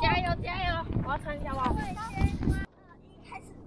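Children shout and laugh while bouncing outdoors.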